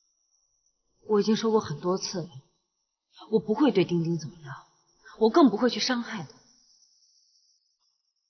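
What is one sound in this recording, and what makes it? A young woman speaks quietly and earnestly.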